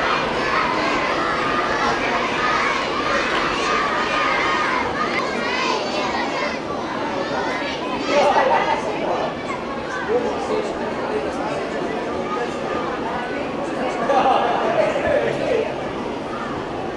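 A large crowd of children and adults chatters and cheers outdoors.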